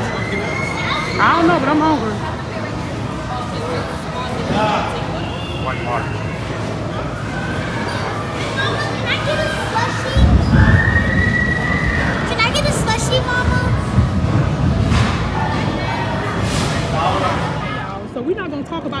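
A crowd chatters in a large echoing indoor hall.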